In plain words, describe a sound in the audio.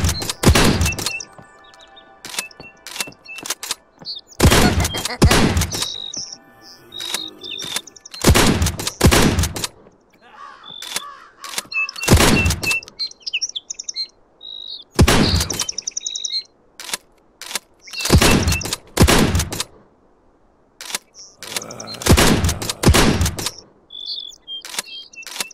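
A shotgun is pumped and reloaded with sharp metallic clicks.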